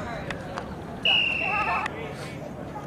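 A referee's whistle blows once sharply.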